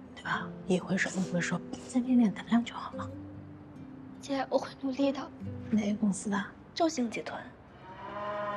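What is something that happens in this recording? A woman speaks calmly and kindly up close.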